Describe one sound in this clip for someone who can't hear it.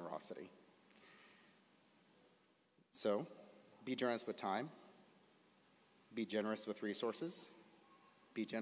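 A man speaks calmly through a microphone in a large hall, pausing between phrases.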